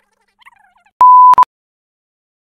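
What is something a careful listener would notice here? A loud, steady test tone beeps briefly.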